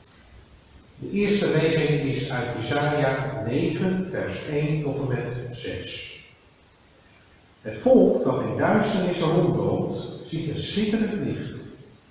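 A middle-aged man reads aloud calmly into a microphone in a room with a slight echo.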